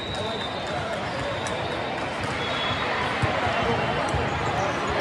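A crowd of many people chatters throughout a large echoing hall.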